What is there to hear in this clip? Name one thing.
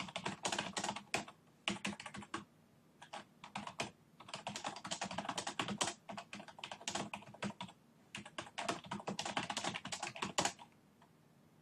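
Keys on a computer keyboard click rapidly as someone types.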